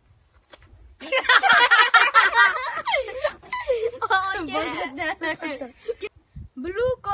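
Several young boys laugh loudly.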